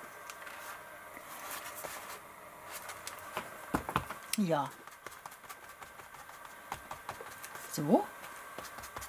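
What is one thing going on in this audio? Paper rustles and crinkles as hands shuffle through sheets.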